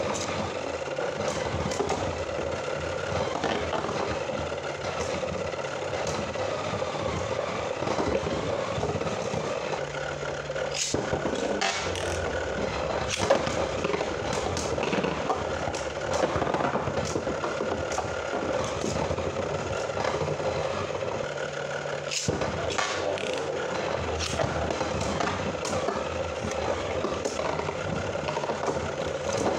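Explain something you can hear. Spinning tops whir and scrape around a plastic arena.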